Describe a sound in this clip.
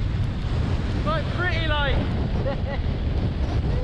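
A young man speaks loudly over the wind, close by.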